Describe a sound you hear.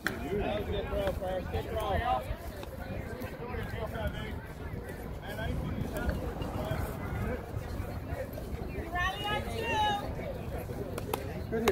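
Women and men talk and call out across an open field.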